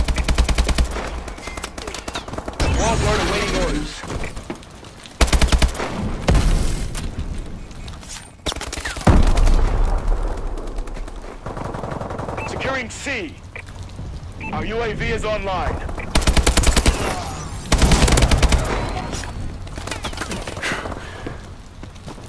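Rapid automatic gunfire rattles in quick bursts.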